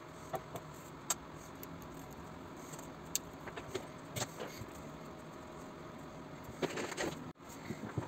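Small plastic parts click and rustle as hands handle them.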